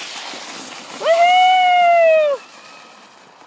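A small child gives a long, loud shout.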